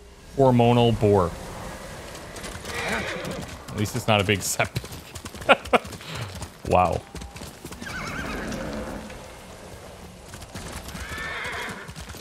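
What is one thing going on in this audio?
A horse's hooves thud as it gallops along a dirt path.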